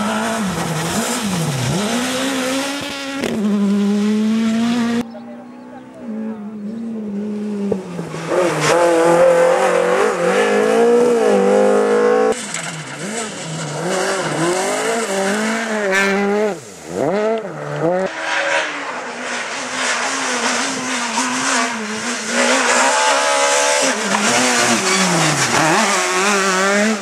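Rally car engines roar and rev hard as the cars race past, close by.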